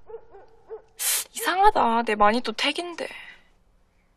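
A young woman speaks quietly and earnestly close by.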